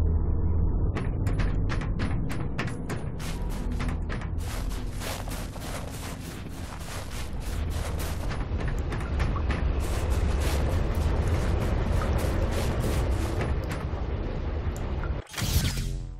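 Heavy footsteps crunch over snow.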